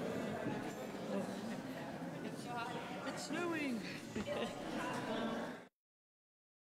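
A crowd of men and women chat and greet each other in a large echoing hall.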